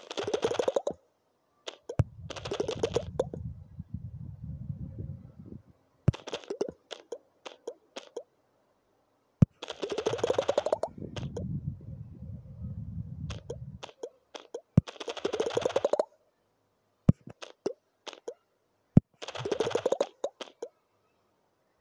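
Rapid crunching smash sounds burst in quick runs, rising in pitch.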